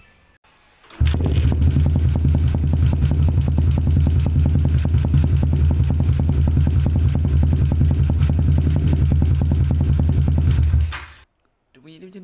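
A motorcycle engine idles loudly with a rapid, steady throb close by, then cuts off.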